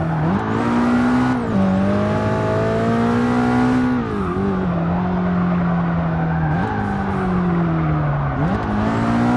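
A race car engine roars loudly, climbing and dropping in pitch as it shifts gears.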